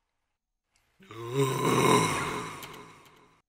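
A young man makes a long drawn-out groaning sound close to a microphone.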